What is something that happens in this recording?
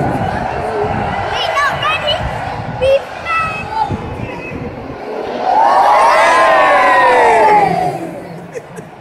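Nearby men and women shout and sing loudly in a crowd.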